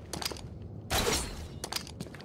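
A grappling device fires with a sharp metallic crack.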